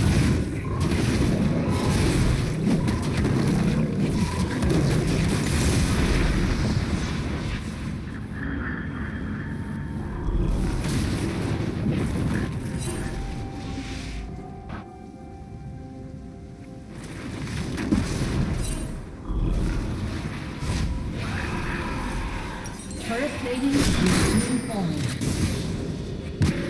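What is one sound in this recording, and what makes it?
Game sound effects of spells and attacks play in bursts.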